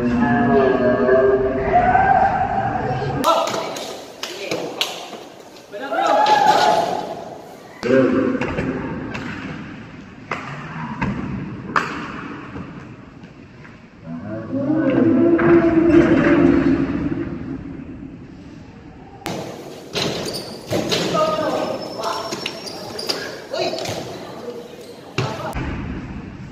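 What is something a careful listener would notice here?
A basketball bounces and thuds on a wooden court in a large echoing hall.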